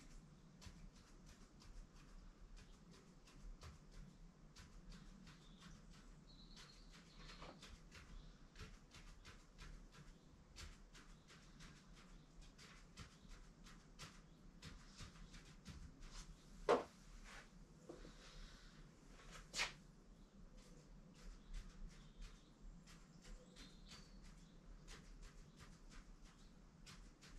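A pen taps and scratches rapidly on paper, close by.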